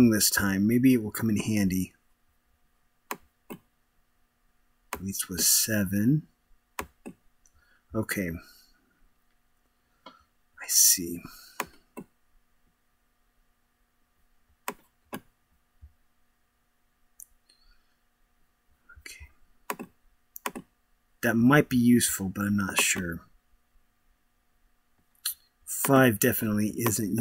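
A man speaks calmly and close to a microphone, in short bursts.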